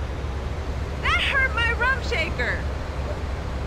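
A woman screams in pain.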